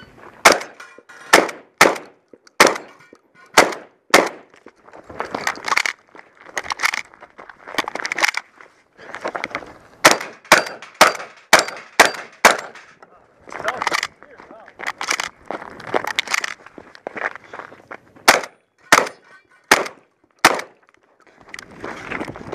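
A shotgun's pump action clacks between shots.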